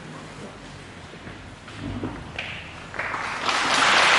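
A chair scrapes as a man gets up.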